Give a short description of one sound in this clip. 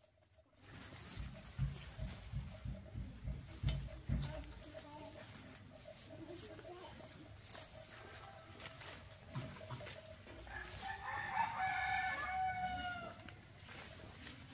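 Leafy plants rustle close by.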